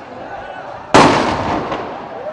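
A loud bang rings out and echoes off buildings.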